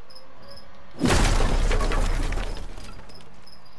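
A wooden door bursts apart and splinters.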